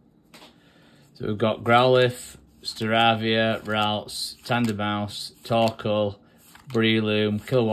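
Trading cards slide and flick against each other in hands.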